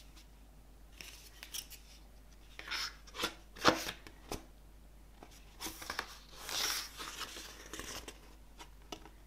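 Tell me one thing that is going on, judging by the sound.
Stiff paper pages rustle and flap as a booklet is handled and leafed through.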